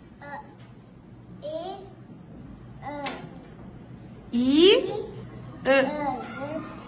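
A young girl speaks slowly and clearly nearby, sounding out syllables.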